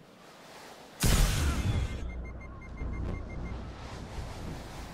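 A sudden loud rush of air bursts in and roars on steadily.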